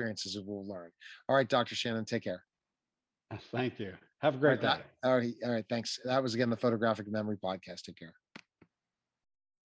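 A middle-aged man talks with animation, heard through an online call.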